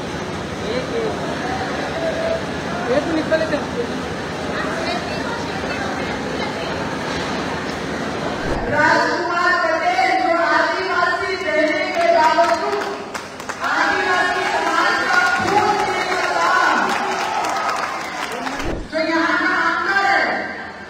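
A woman speaks forcefully into a microphone over a loudspeaker, in a large echoing space.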